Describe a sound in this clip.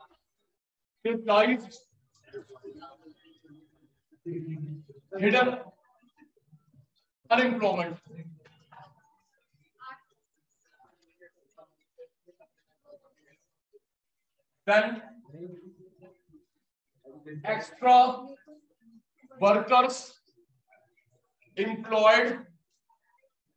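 A man speaks in short bursts, explaining like a teacher.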